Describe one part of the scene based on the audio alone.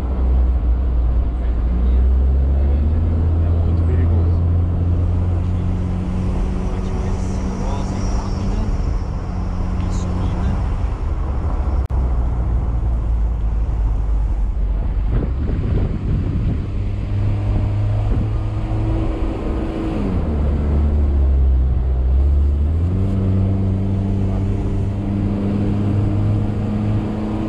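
A car engine hums steadily from inside the car, its pitch rising and falling as it shifts gears.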